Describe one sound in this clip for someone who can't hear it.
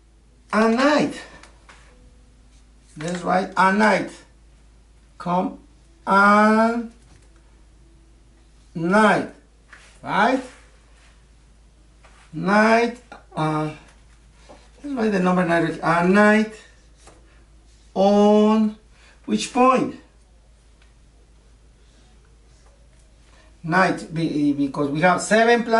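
A middle-aged man speaks calmly and clearly nearby, in short phrases with pauses.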